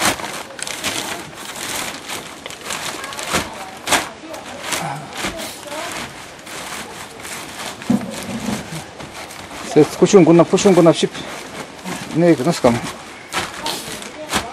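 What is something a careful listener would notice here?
A plastic sheet crinkles and rustles as it is handled.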